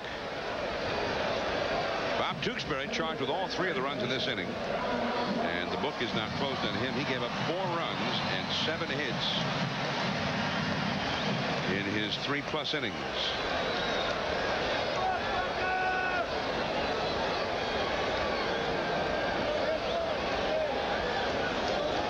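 A large crowd cheers and murmurs in a stadium.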